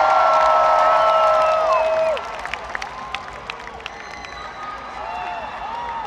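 A crowd whistles loudly.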